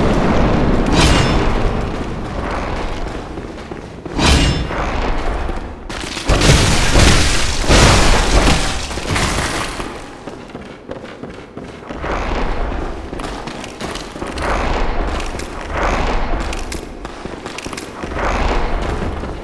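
Footsteps thud quickly on stone.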